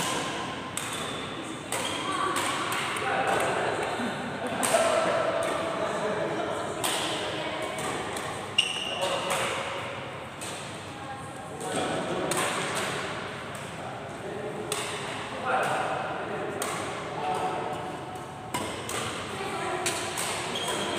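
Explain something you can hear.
Shoes squeak on a wooden court.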